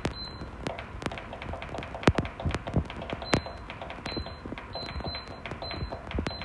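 An air fryer's touch panel beeps with short electronic tones as its buttons are pressed.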